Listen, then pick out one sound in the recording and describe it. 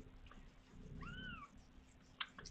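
A kitten mews softly.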